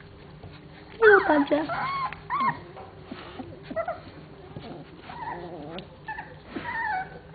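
Puppies whine and yelp in high squeaky cries.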